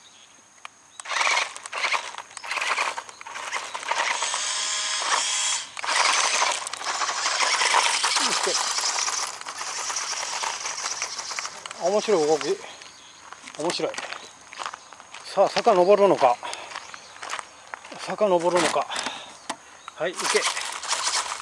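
Small tyres crunch and rattle over loose gravel outdoors.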